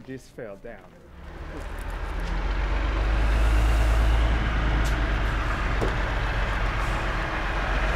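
A heavy truck engine rumbles loudly nearby.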